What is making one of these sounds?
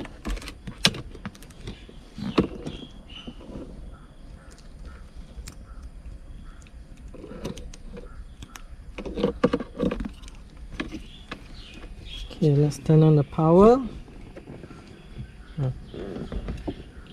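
Plastic parts click and rattle as they are handled close by.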